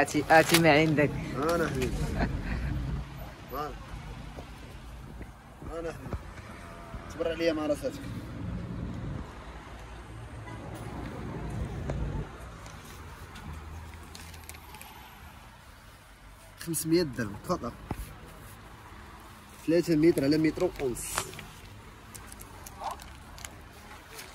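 Fabric rustles as it is handled and unfolded.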